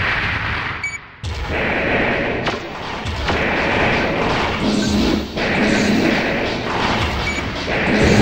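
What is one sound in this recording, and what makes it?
A pulse rifle fires in short bursts.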